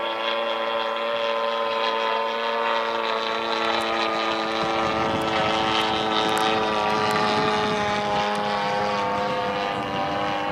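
A propeller plane's engine drones steadily overhead, with a slight shift in pitch as it passes.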